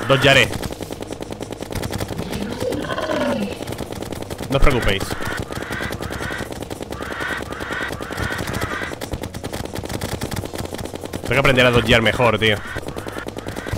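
Video game weapons fire with rapid clicking hits.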